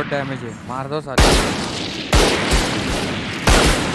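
A sniper rifle fires a loud, sharp shot.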